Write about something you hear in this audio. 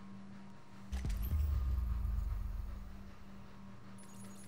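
A deep whoosh swells and then fades away.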